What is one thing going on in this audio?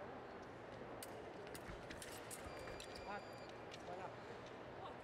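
Thin metal blades click and clash together.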